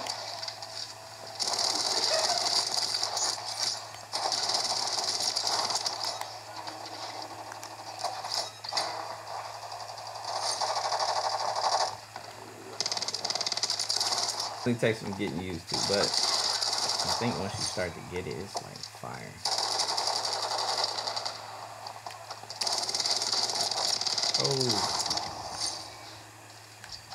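Gunfire from a video game plays through a small speaker.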